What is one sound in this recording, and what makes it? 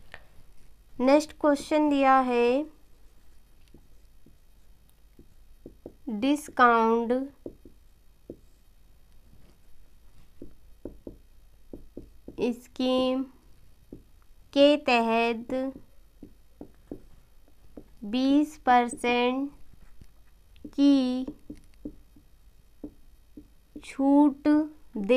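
A woman speaks clearly in short phrases, as if teaching.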